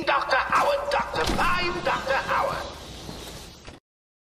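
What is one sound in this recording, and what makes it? A metal door swings open.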